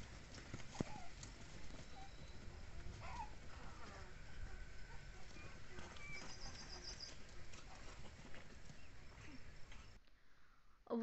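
Cats scuffle and tussle on dry ground.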